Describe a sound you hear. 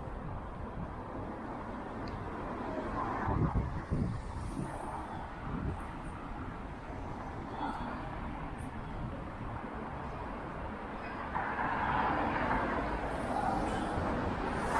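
Traffic hums steadily along a street outdoors.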